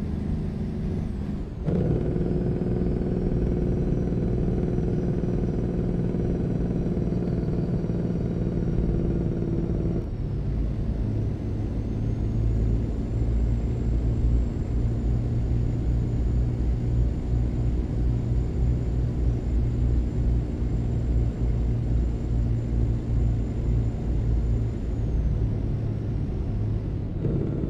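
A truck engine hums steadily as it drives.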